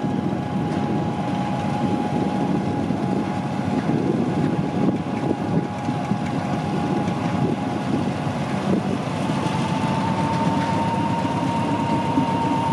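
A diesel locomotive rumbles and drones steadily as it slowly hauls a train past.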